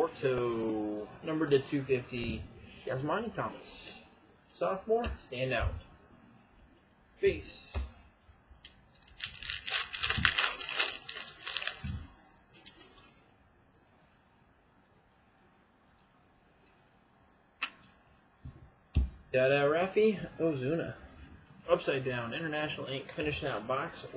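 Trading cards slide and tap against each other.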